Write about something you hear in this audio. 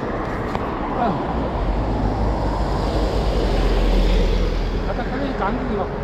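A delivery truck passes close by.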